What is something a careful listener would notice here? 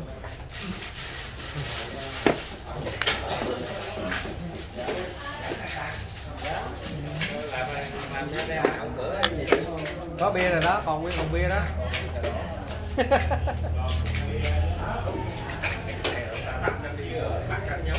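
Wooden game pieces clack sharply onto a board.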